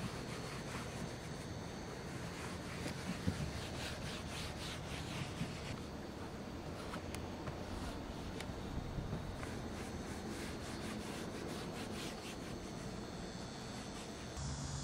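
A cloth wipes and rubs against a car door panel.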